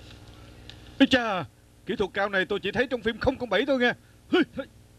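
A man speaks through a television loudspeaker.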